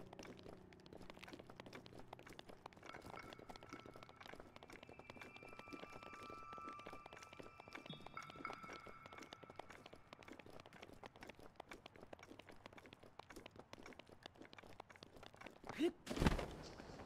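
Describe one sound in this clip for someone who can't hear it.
Footsteps crunch quickly over snowy rock.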